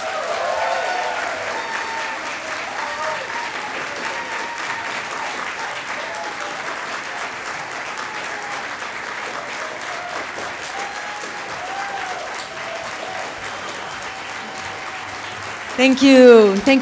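A large crowd cheers and applauds in an echoing hall.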